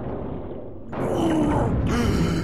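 A burst of energy crackles and fizzes loudly underwater.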